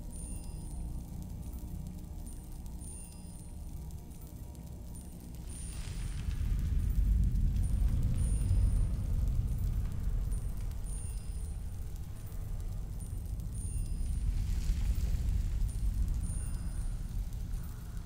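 A magic flame hums with a low, steady rumble.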